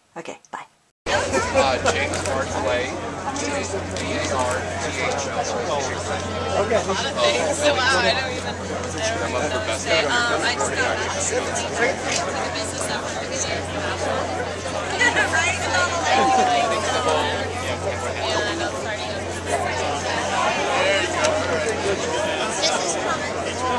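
A crowd chatters loudly all around.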